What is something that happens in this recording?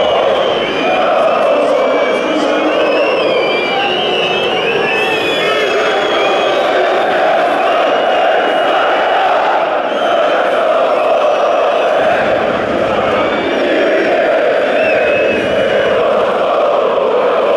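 Shrill whistles sound from a crowd.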